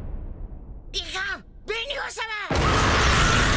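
A young woman shrieks in panic.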